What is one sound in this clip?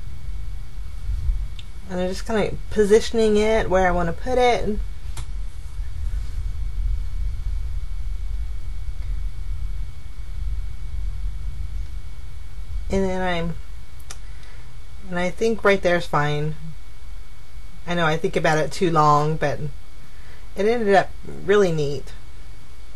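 Paper rustles and crinkles softly as it is handled.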